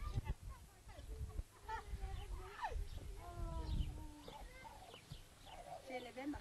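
Several women talk with animation nearby.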